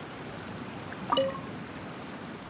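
A bright magical chime rings out with a shimmering whoosh.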